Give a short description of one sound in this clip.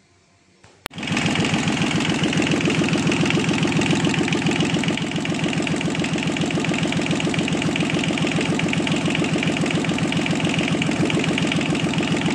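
A small diesel engine starts and runs with a loud, steady, fast chugging close by.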